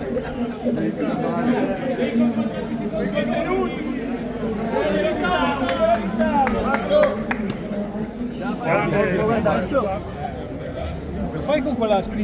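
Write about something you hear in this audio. A crowd of men talk and call out over each other close by, outdoors.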